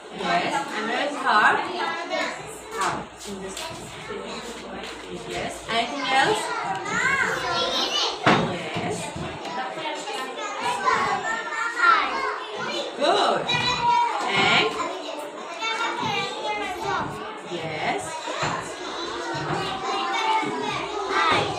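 A young girl talks close by.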